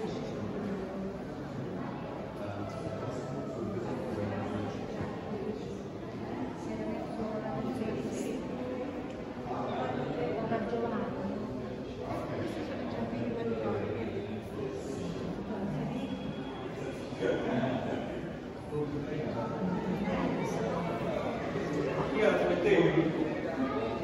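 A crowd of adult visitors murmurs and chats in a large echoing hall.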